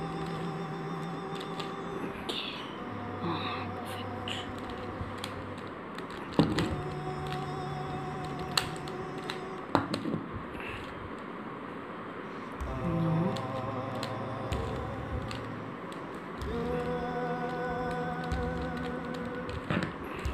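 A plastic puzzle cube clicks and rattles as it is twisted.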